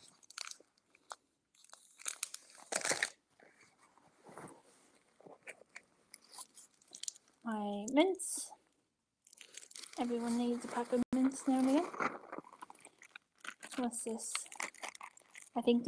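A plastic snack wrapper crinkles in a hand.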